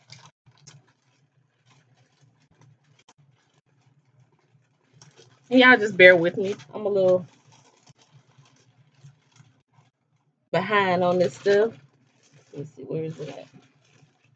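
Plastic wrapping rustles as a woman handles it.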